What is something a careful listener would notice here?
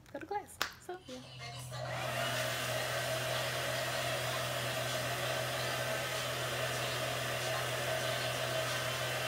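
A hair dryer blows with a steady whirring roar.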